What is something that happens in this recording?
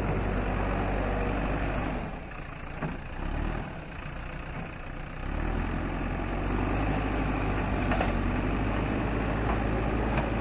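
A diesel engine rumbles and revs steadily.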